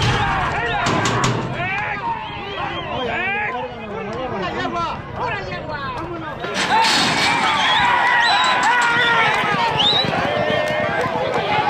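Horses gallop with drumming hooves on a dirt track.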